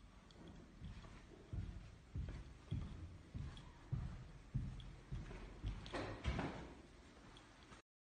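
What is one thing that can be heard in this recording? Footsteps thud down carpeted stairs.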